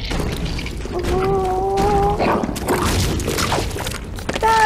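A giant toad croaks with a deep, gurgling call.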